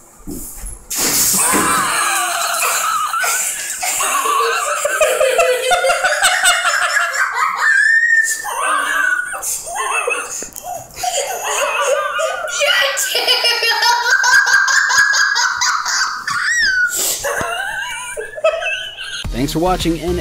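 A young boy sobs and wails loudly up close.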